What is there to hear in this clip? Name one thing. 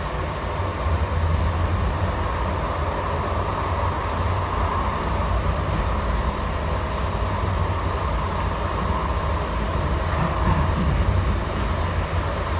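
A train car rumbles and rattles steadily along the tracks.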